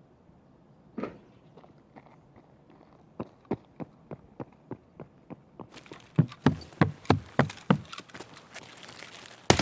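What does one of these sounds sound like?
Footsteps thud at a steady pace.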